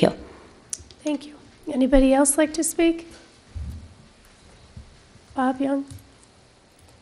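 A woman speaks into a microphone in a calm, formal tone.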